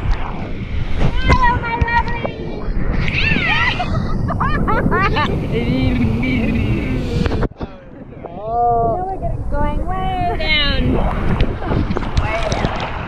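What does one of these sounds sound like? Young women shout and laugh excitedly close by.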